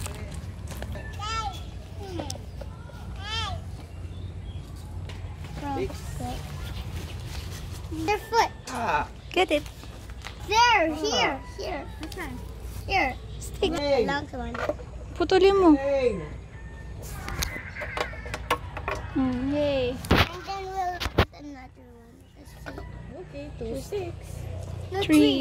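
A young girl talks in a high voice close by.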